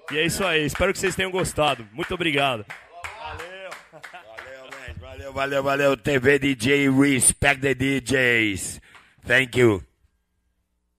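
A young man raps loudly into a microphone.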